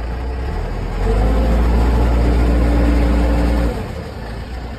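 A diesel engine revs up loudly, then settles.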